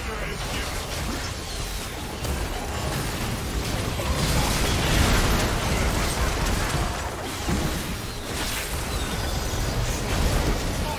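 Game spell effects whoosh and crackle in a chaotic fight.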